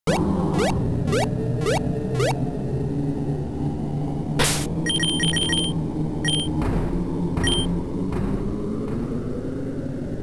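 Chiptune game music plays steadily.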